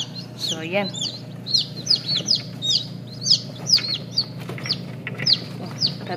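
Chicks peep rapidly and shrilly close by.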